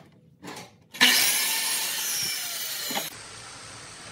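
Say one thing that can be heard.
A miter saw runs.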